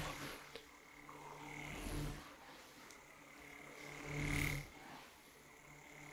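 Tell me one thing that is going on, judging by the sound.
A young man whispers softly close to a microphone.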